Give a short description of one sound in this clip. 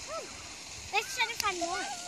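A child splashes through shallow water.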